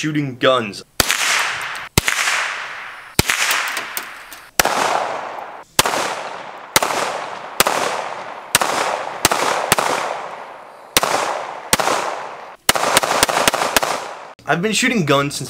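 Gunshots crack sharply outdoors, one after another, with echoes rolling off.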